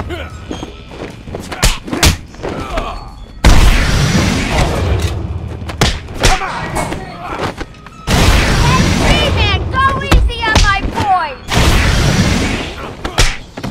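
Heavy punches and kicks land with thuds and smacks.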